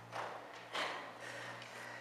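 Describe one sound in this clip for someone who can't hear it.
A horse canters and jumps over soft ground.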